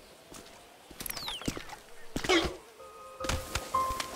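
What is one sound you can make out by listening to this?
A body thuds as it tumbles down a slope.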